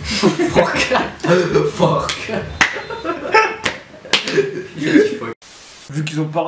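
Young men laugh loudly together.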